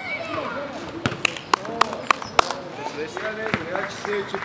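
A basketball bounces repeatedly on a hard outdoor court.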